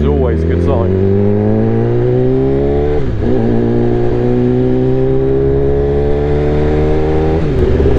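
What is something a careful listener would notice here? A motorcycle engine roars steadily, rising in pitch as it speeds up and dropping briefly when the gear changes.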